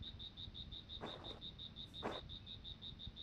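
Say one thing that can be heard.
Fabric rustles as a heavy blanket is pulled over a bed.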